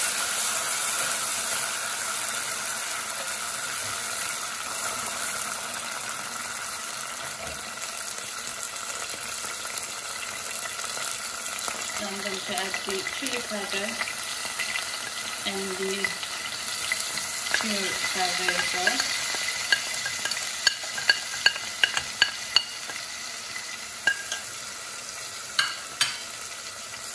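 Broth simmers and bubbles steadily in a pot.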